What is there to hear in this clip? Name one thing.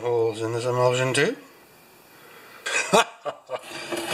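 A metal can is set down on a hard bench with a light knock.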